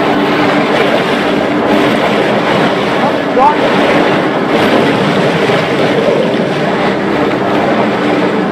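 Water splashes and sloshes as a creature swims through it.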